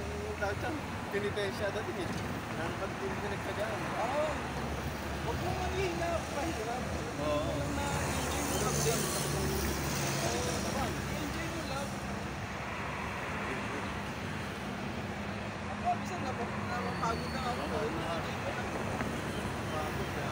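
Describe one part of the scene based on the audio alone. A man talks with animation, close by, outdoors.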